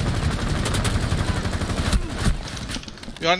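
Rapid gunshots fire in loud bursts.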